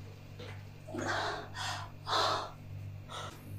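A young woman cries out with effort.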